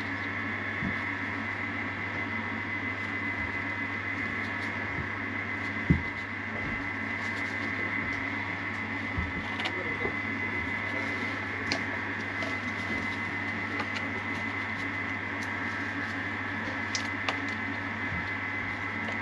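A wooden stick scrapes and taps inside a plastic cup.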